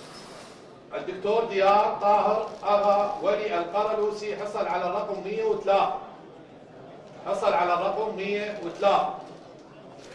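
A man speaks clearly into a microphone, announcing.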